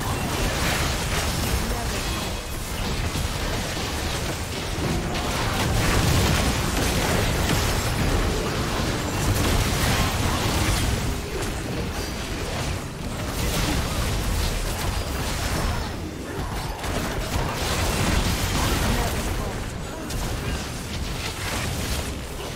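Magic spells blast and crackle in a busy battle.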